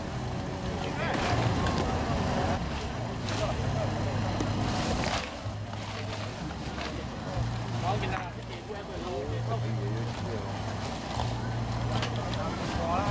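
Men talk and call out nearby.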